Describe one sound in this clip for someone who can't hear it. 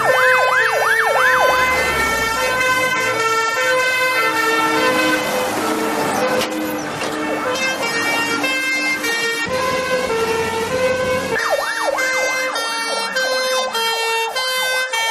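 A siren wails, rising and falling.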